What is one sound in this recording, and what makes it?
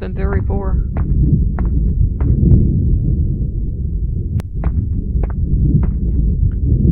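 Footsteps tread steadily along a hard floor.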